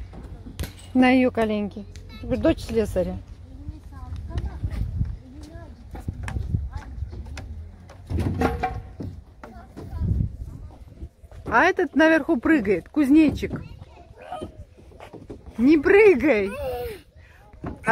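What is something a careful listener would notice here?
A little girl babbles and squeals excitedly close by.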